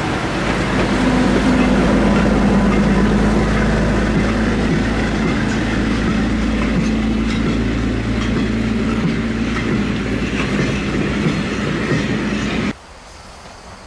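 Train carriages rumble and clatter past on rails close by.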